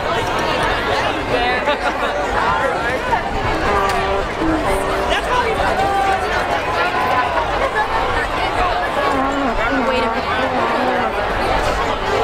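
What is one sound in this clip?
A large outdoor crowd chatters and talks loudly all around.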